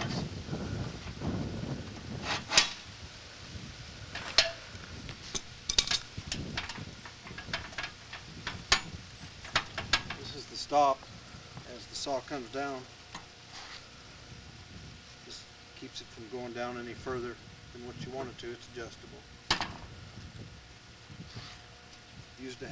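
Metal parts clank and click sharply.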